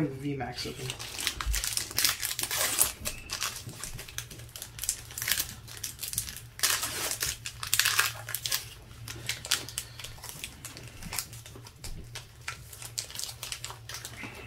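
Plastic wrapping crinkles and rustles as hands tear open a card pack.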